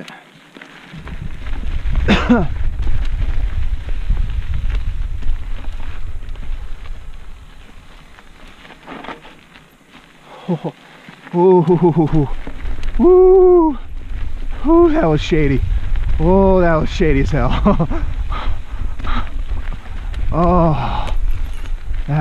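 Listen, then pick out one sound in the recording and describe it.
Mountain bike tyres roll and rattle over a rocky dirt trail.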